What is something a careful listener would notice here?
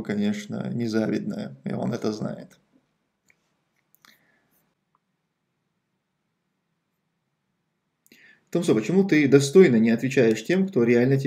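A man speaks calmly and close to a microphone, pausing between phrases.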